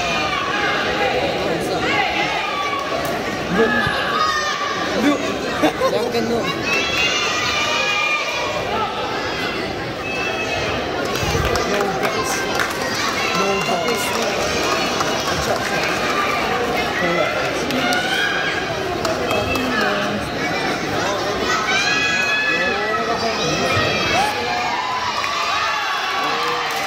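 A crowd of children and adults chatters and shouts nearby in a large echoing hall.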